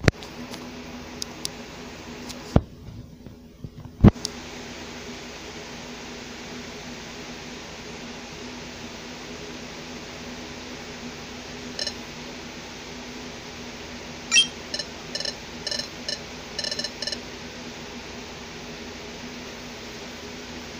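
Bright sparkling chimes ring out from a video game.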